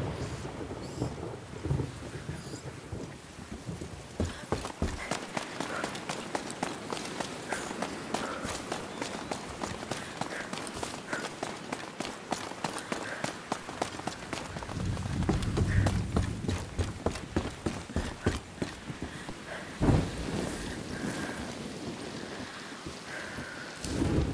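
Footsteps thud and scrape on stone and wooden boards.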